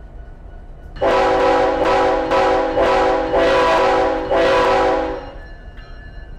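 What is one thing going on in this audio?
A diesel locomotive horn blows in several loud blasts.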